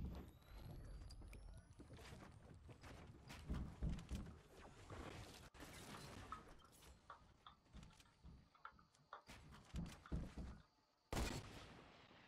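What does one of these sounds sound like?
Footsteps thump on wooden floors.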